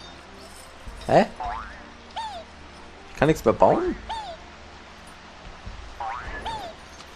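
Squeaky cartoon sound effects chirp in short, quick bursts that rise and fall.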